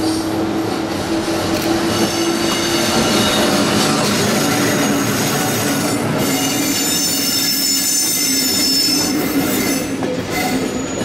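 A locomotive engine hums loudly as it passes close by.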